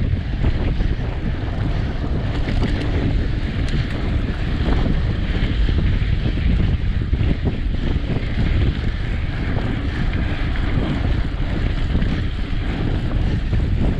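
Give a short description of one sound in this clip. Bicycle tyres roll and crunch over a bumpy dirt track.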